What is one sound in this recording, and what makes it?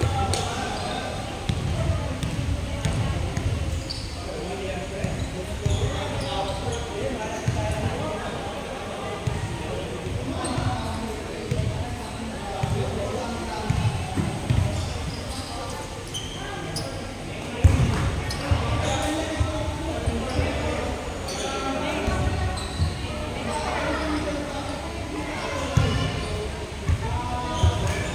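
Many people chatter and call out across a large echoing hall.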